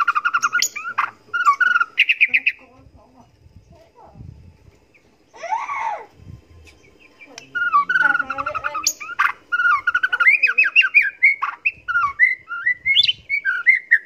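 A songbird sings loud, rapid whistling phrases close by.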